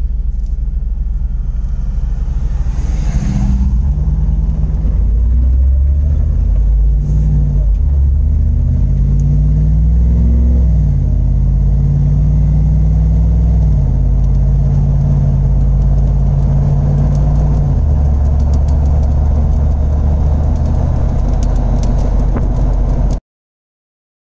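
A car engine hums and drones steadily from inside the cab.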